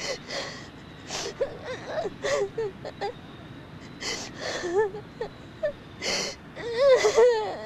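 A man sobs quietly and close by.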